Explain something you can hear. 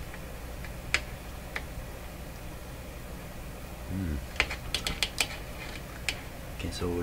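Pliers click faintly against metal parts.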